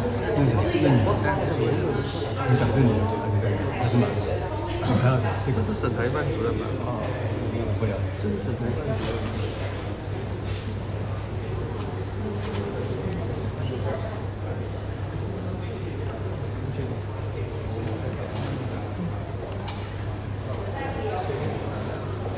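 A crowd of men talk over one another nearby.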